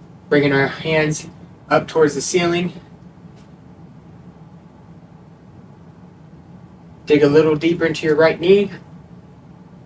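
A man speaks calmly and close by, with pauses between phrases.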